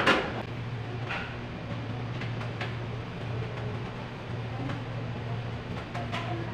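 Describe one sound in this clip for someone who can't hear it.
Dishes and containers clatter and clink as they are handled.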